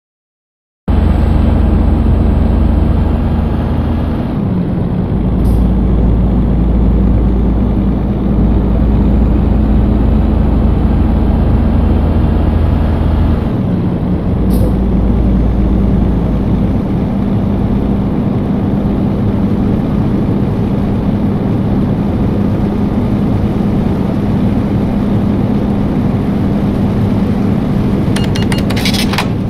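A truck engine drones steadily with a low hum.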